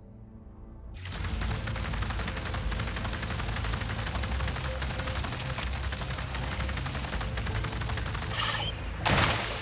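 A ball rumbles quickly over dirt and grass.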